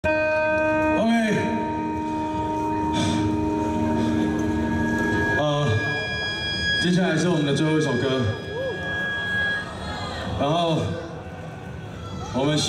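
An electric guitar plays sustained notes through an amplifier.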